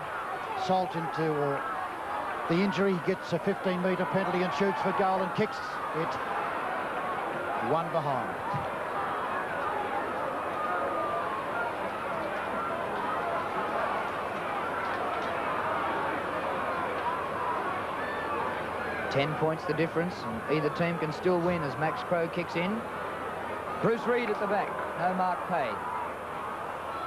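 A large crowd roars and cheers in a stadium.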